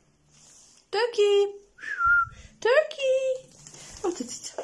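A small dog yelps sharply a few times.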